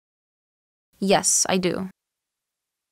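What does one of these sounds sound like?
A young woman answers briefly and calmly, close to a microphone.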